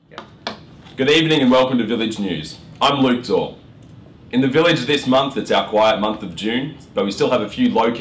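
A young man reads aloud calmly, close by.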